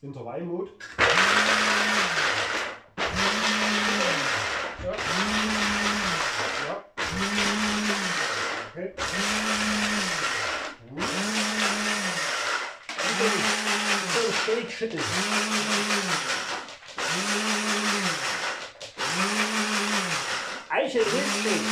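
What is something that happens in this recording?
An electric frother whirs loudly in repeated short bursts.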